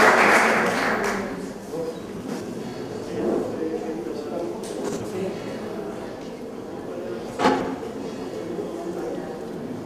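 A woman speaks into a microphone in a large room.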